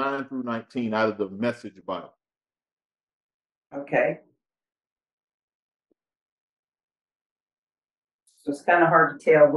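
A man speaks calmly and clearly into a microphone, with long pauses.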